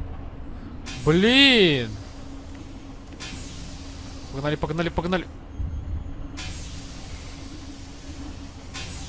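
Steam hisses from a pipe.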